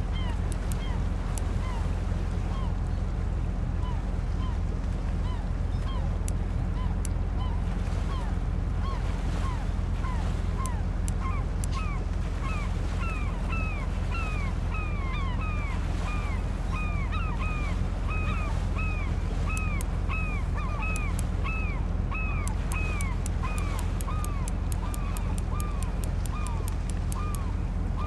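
Sea waves lap against a boat hull.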